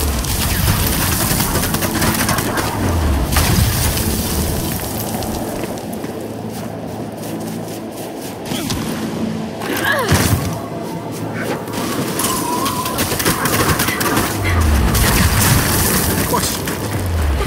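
Heavy boots crunch through snow at a steady walking pace.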